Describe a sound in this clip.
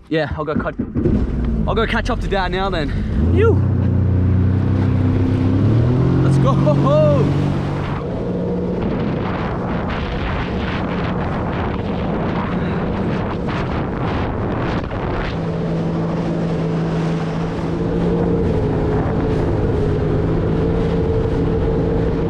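A jet ski engine roars and revs up.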